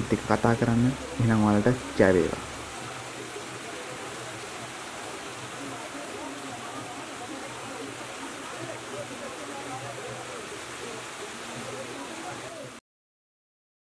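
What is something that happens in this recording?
Water trickles and splashes steadily over rocks.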